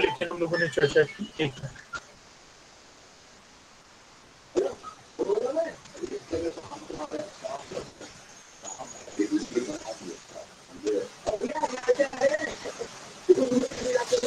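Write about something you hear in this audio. A man speaks calmly over an online call, with pauses.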